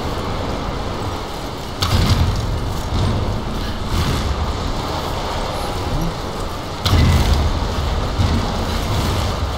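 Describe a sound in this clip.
Strong wind roars steadily.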